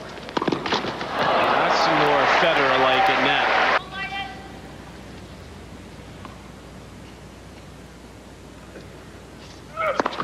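A tennis ball is struck hard by a racket.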